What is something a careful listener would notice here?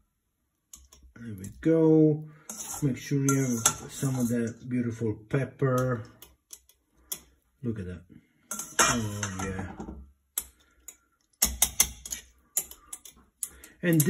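Metal tongs clink against a glass jar.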